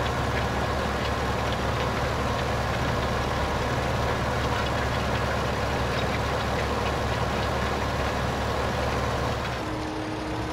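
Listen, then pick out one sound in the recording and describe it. A harrow rattles over the soil.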